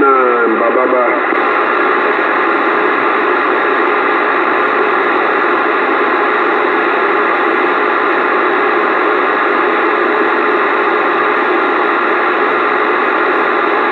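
A radio hisses with loud, steady static through its speaker.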